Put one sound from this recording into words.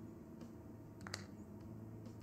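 A plastic bottle drops into a cardboard box with a soft thud.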